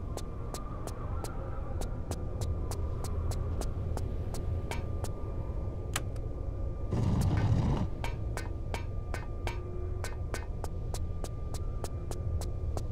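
Quick footsteps tap steadily on a hard floor.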